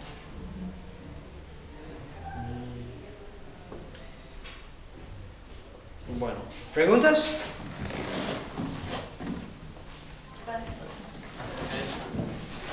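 A man speaks calmly to a room, his voice echoing slightly.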